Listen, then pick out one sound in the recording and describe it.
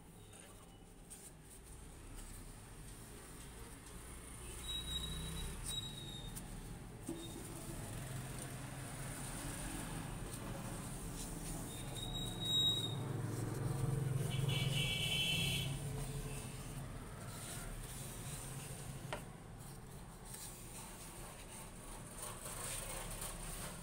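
A cloth rubs and wipes against metal.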